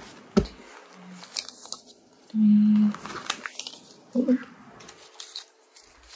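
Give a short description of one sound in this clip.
A card slides out of a plastic sleeve with a soft scrape.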